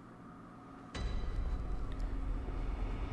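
Footsteps thud softly on stone.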